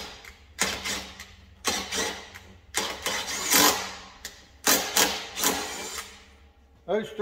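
A cordless impact driver rattles in short, loud bursts.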